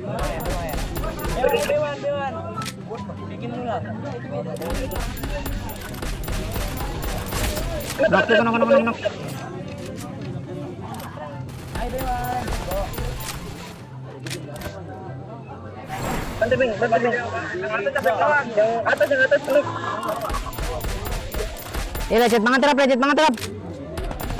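Sniper rifle shots crack out now and then.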